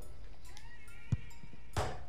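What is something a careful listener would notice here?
A football is struck hard with a sharp thud.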